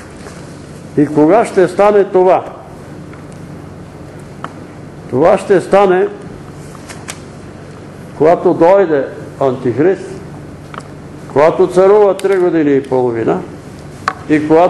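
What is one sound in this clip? An elderly man reads aloud slowly in a bare, echoing room, pausing between phrases.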